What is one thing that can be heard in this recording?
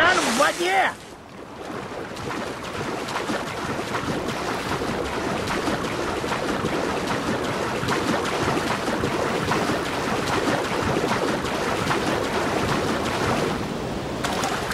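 A swimmer splashes through water.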